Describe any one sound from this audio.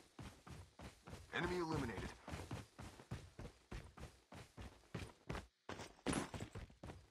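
Footsteps thud quickly and steadily on grass.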